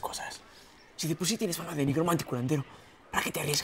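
A young man speaks urgently, close by.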